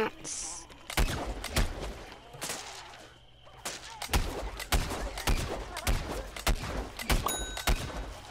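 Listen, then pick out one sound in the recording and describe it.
A blaster fires rapid shots.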